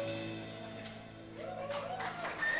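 A band's final chord rings out and fades.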